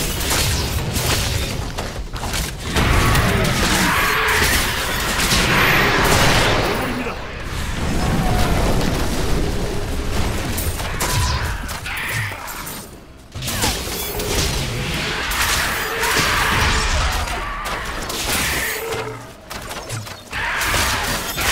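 Fiery spell blasts explode again and again with loud booms.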